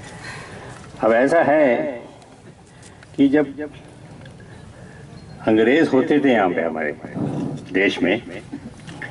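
An elderly man speaks forcefully into a microphone over a loudspeaker outdoors, in bursts with pauses.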